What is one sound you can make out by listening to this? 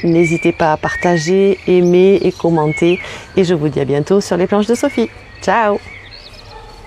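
A woman speaks warmly and close up to a microphone.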